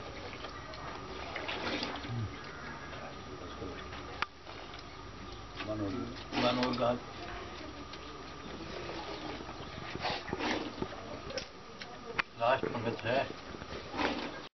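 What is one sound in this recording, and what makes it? Liquid is ladled from a metal bucket with clinks.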